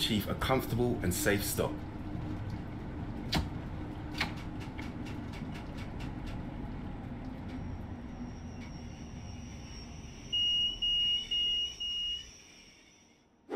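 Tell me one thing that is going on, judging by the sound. A train rumbles along the rails and slows to a stop.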